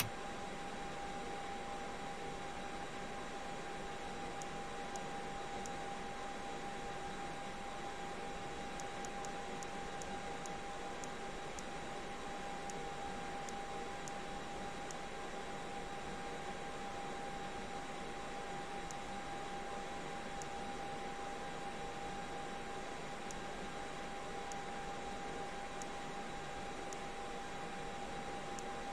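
A steady cockpit hum drones with a high whine.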